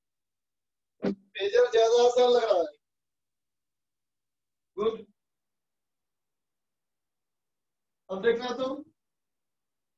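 A man speaks in short bursts, calmly and close by.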